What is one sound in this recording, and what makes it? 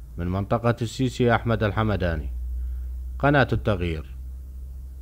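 A young man speaks with animation into a microphone nearby.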